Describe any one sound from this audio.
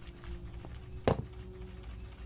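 A short knock sounds as something is picked up.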